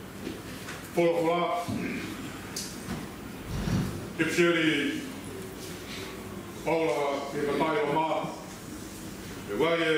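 A man reads aloud calmly through a microphone in an echoing room.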